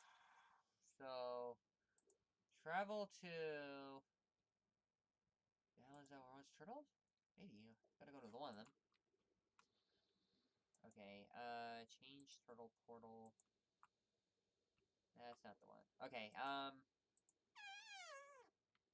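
A young woman talks calmly and close to a microphone, in short bursts.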